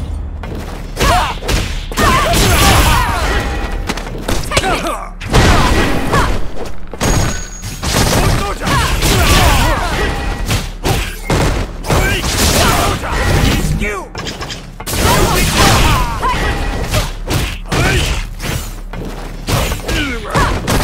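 Punches and kicks land with sharp smacks and thuds.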